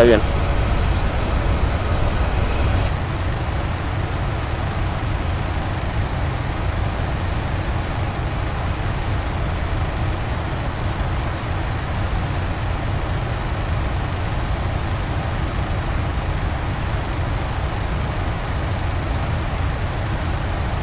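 Jet engines roar with a steady low rumble.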